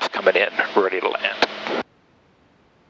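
A man speaks over an aviation headset intercom.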